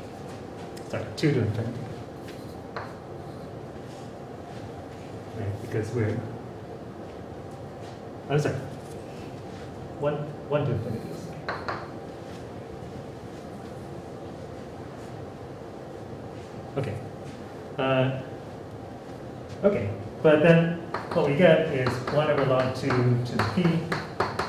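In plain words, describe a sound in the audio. A man speaks calmly, with pauses.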